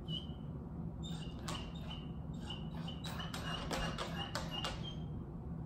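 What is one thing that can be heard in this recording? A puppy whines with short, high cries over and over.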